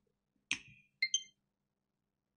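A handheld console plays a short chime.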